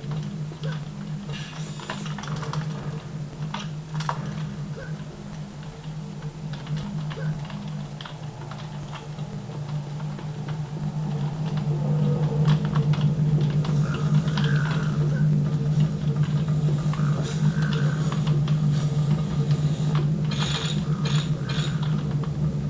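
Game gunfire and effects play from small speakers.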